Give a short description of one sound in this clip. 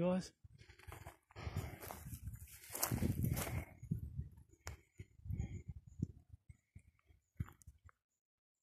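Dry grass rustles and crunches underfoot.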